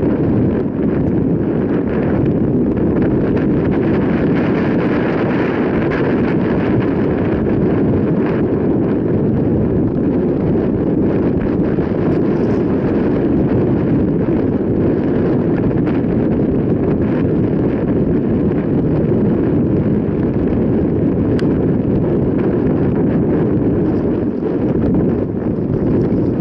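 Bicycle tyres crunch and rumble over a rough dirt track.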